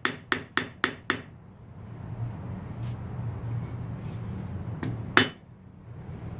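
A hammer rings sharply on an anvil in quick blows.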